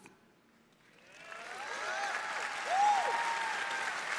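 A large crowd cheers and applauds.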